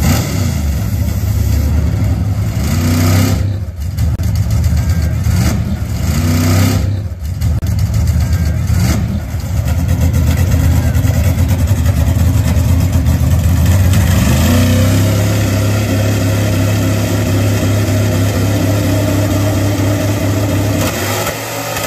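A drag car's engine roars loudly, revving up and down in bursts.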